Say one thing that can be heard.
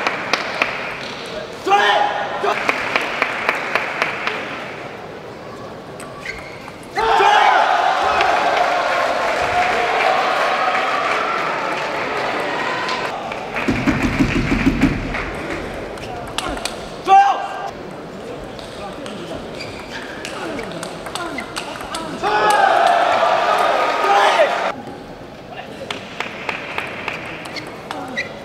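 A ping-pong ball clicks rapidly back and forth on the paddles and table.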